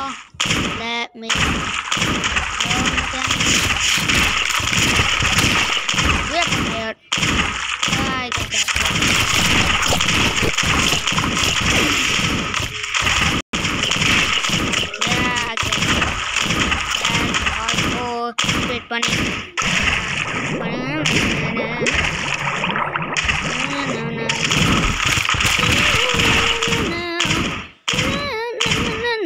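Wet paint splatters and squelches over and over.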